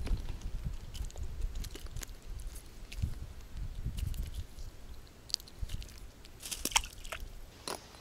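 Hands fumble and rustle close by.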